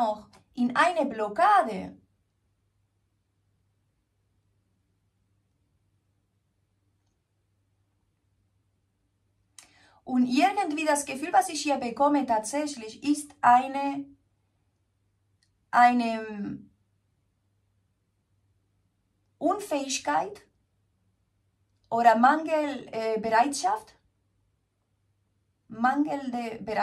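A woman speaks calmly and closely, in short bursts with pauses.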